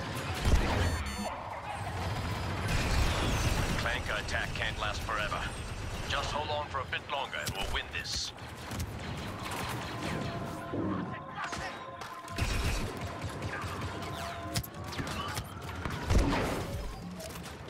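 Explosions boom loudly.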